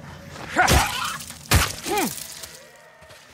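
A wolf snarls and yelps loudly.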